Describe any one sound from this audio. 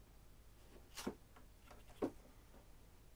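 Scissors snip thread with sharp clicks.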